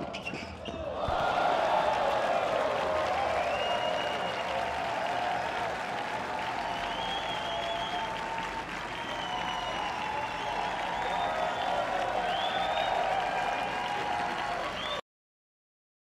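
A large crowd cheers and applauds loudly.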